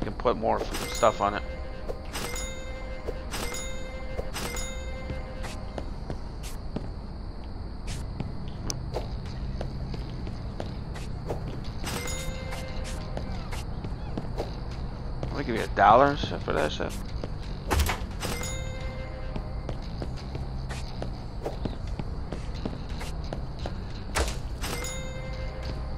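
A short cash chime rings out several times.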